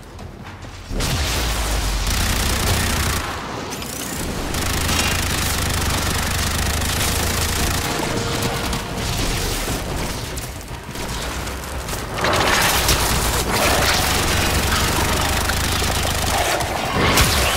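Guns fire rapidly in bursts.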